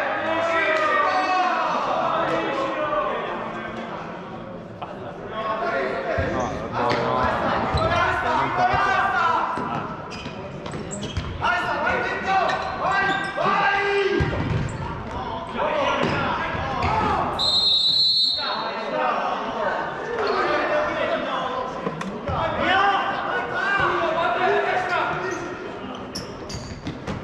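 A ball thuds on a hard floor in a large echoing hall.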